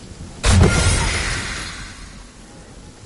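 A loud rush of air bursts out and fades as a game character lands.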